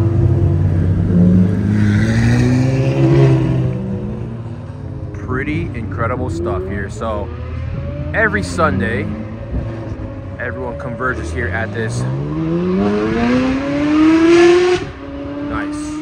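A sports car engine revs with a rising roar as the car pulls away.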